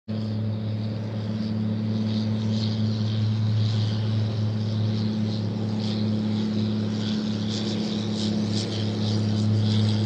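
A motorboat engine drones as the boat speeds across the water.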